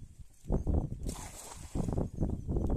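A cast net splashes onto the water.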